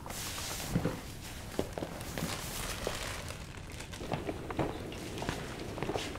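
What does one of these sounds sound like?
A jacket rustles as it is swept up from a chair.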